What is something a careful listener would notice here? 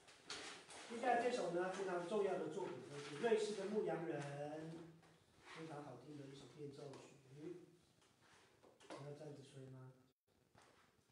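A man speaks calmly to a small group nearby.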